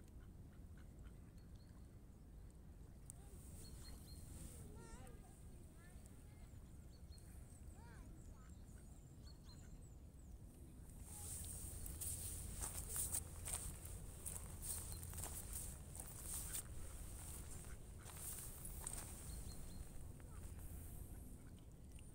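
Wind blows across open water outdoors.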